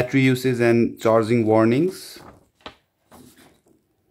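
Paper pages rustle as a booklet page is turned.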